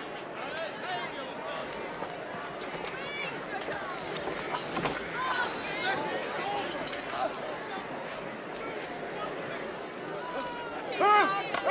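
A crowd of men and women murmurs outdoors.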